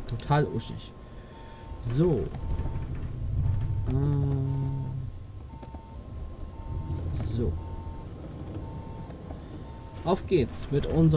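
A turn signal beeps in a steady, even rhythm.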